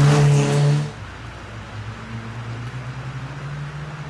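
A rally car's engine drones in the distance as the car approaches.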